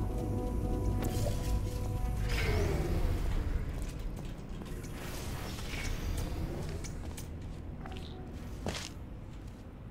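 A clock ticks steadily.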